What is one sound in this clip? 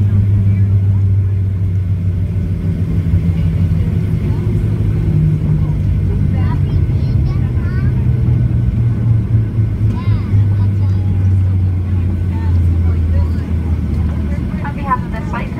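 A jet engine roars steadily in a plane cabin.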